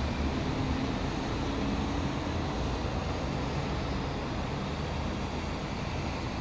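A boat engine hums low and steadily across the water.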